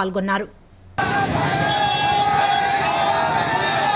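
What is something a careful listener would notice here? A crowd cheers and chants outdoors.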